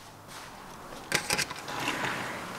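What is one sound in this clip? A sliding glass door rattles and slides open.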